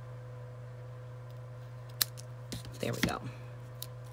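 Scissors snip through ribbon.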